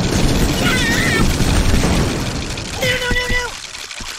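A rocket explodes with a loud bang.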